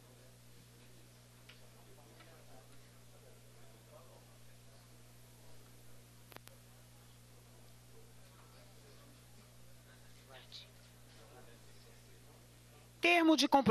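Several men chat and laugh nearby.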